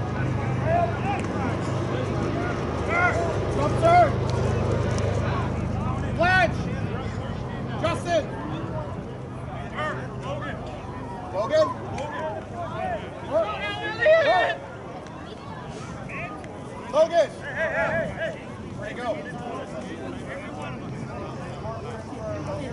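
Players shout and call out to each other across an open field in the distance.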